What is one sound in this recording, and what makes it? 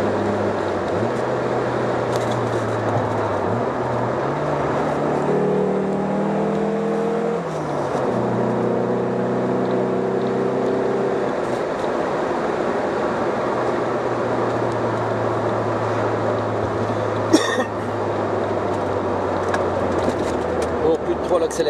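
Tyres roll on the road with a steady rushing noise.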